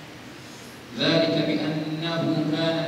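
A boy chants a recitation loudly into a microphone, with a sustained melodic voice.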